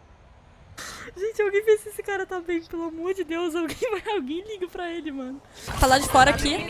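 A young woman laughs loudly into a close microphone.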